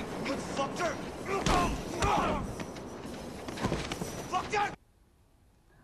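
Voices from a film play through a speaker, tense and loud.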